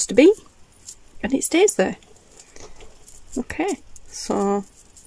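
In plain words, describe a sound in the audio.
Beads and metal charms on a bracelet clink softly.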